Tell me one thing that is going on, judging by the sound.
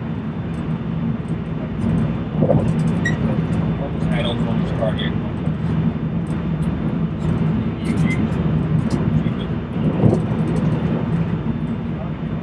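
Train wheels click and clatter over rail joints.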